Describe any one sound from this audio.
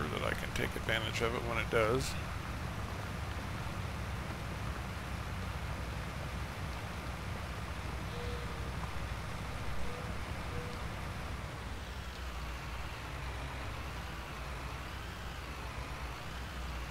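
A cultivator scrapes through soil.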